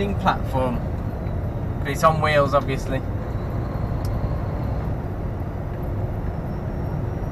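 A vehicle engine hums steadily while driving along a road.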